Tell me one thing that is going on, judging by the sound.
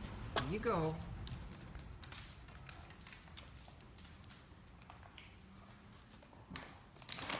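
A large dog's claws click on a tile floor.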